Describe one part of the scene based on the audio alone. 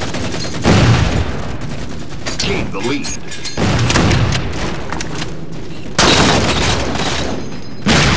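A rifle fires loud, booming shots.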